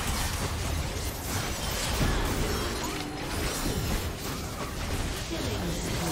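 Game spell effects crackle and burst in quick succession.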